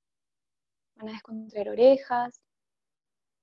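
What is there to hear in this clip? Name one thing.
A woman speaks calmly and briefly over an earphone microphone.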